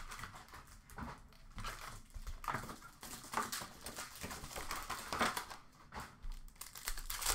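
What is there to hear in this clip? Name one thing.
Plastic wrapping crinkles and rustles as hands handle it.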